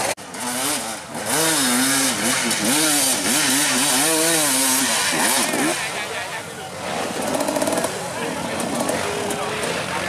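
Dirt bike engines rev and whine up and down nearby, outdoors.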